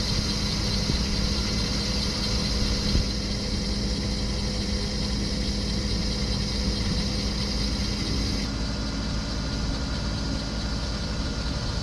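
A diesel military truck engine runs.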